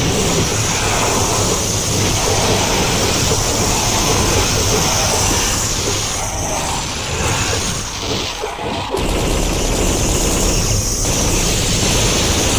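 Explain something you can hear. Rockets explode with loud, rumbling booms.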